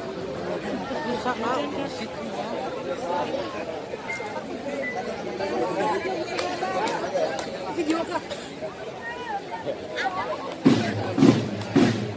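A crowd of men and women talk and shout excitedly all around, close by.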